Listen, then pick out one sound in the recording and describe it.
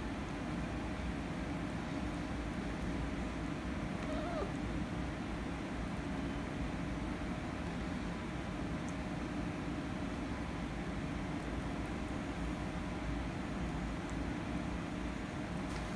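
Two cats scuffle and paw at each other on a soft cushion, with quiet rustling.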